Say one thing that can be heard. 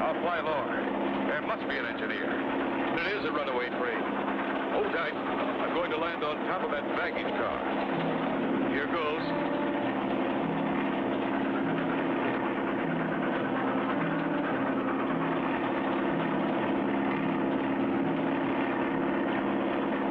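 A propeller plane engine drones steadily.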